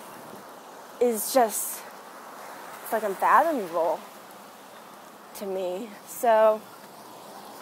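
A young woman speaks expressively close to the microphone, in short bursts.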